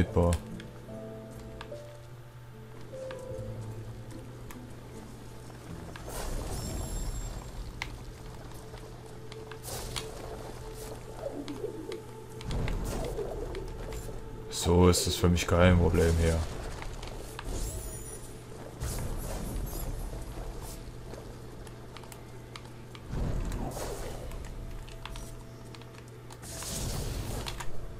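Gentle, atmospheric music plays steadily.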